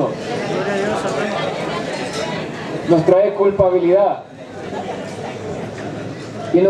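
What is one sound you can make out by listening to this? A crowd of men talks and murmurs nearby.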